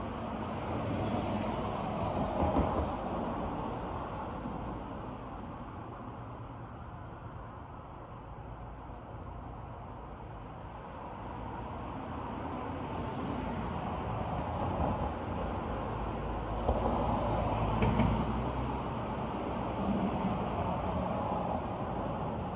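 Wind rustles through the trees outdoors, rising and falling.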